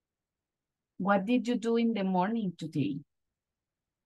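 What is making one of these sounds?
A woman speaks briefly and calmly over an online call.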